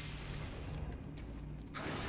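A sword clangs against something metal.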